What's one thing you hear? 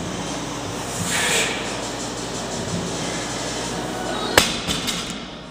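A loaded barbell clanks against metal.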